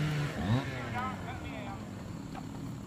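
Several men talk casually outdoors at a short distance.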